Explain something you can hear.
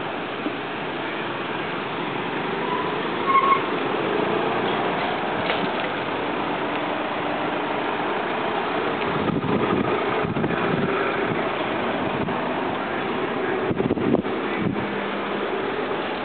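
Traffic rolls past steadily.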